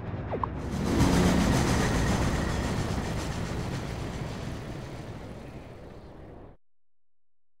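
An airship rushes through the air with a loud whoosh that slowly fades.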